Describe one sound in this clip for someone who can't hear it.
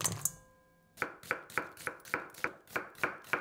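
A knife chops steadily on a wooden board.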